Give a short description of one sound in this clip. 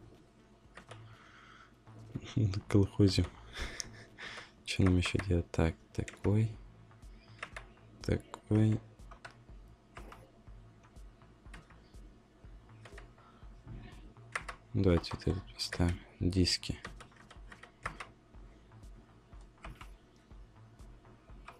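Short menu clicks tick as selections change.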